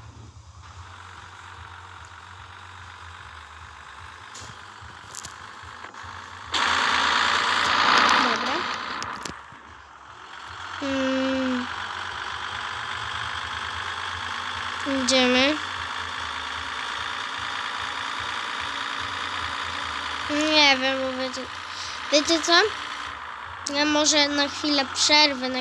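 A truck engine runs as the truck accelerates.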